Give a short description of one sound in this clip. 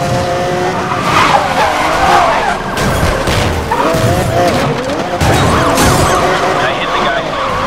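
Tyres screech as a car skids and drifts.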